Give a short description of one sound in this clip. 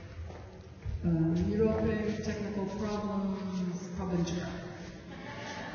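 A woman sings into a microphone in a large echoing hall.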